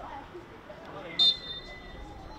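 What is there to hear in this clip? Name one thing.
A hockey stick strikes the ball with a sharp crack.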